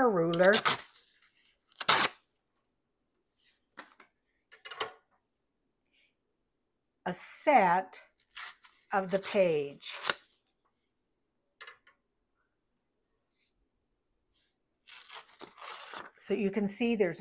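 Paper rustles and slides across a table.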